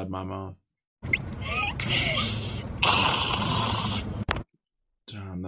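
Young women laugh and talk.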